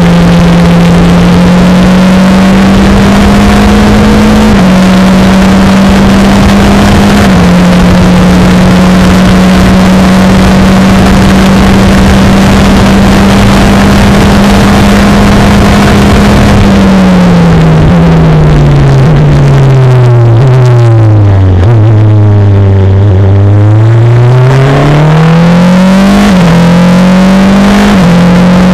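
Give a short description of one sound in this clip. Wind buffets an open cockpit at speed.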